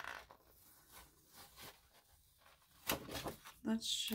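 A page flips over with a soft flutter.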